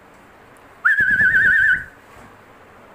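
A parrot whistles a shrill trill.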